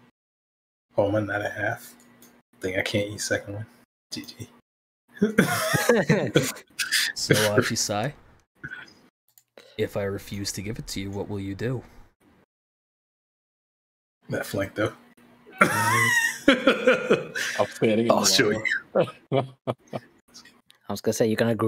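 Several young men talk and laugh with animation over an online call.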